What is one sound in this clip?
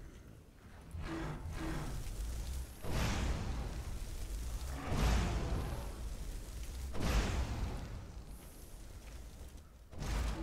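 Fire spells roar and crackle in bursts.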